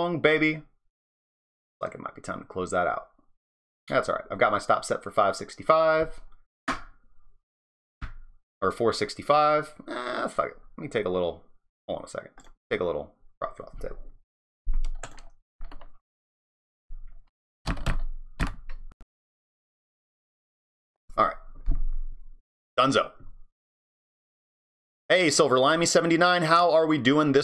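A man talks calmly and casually into a close microphone, with pauses.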